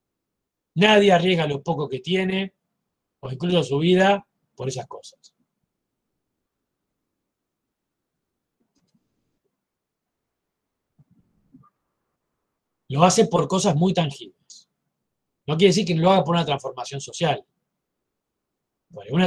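A middle-aged man speaks calmly over an online call, pausing between phrases.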